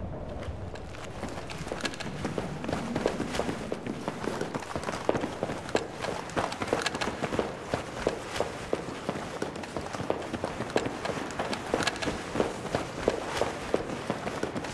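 Footsteps of soldiers thud on a hard floor.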